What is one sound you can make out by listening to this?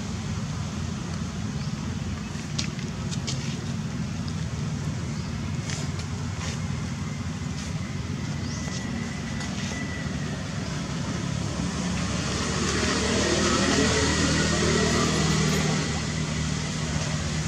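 A baby monkey suckles with soft wet smacking sounds.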